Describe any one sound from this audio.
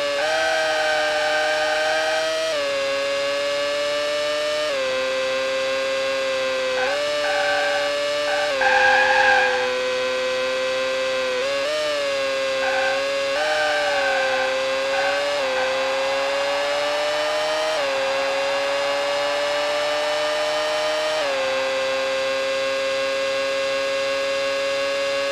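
A racing car engine whines steadily, its pitch jumping with each gear change.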